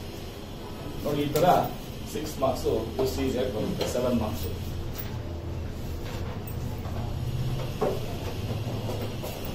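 A middle-aged man talks calmly, close by, explaining.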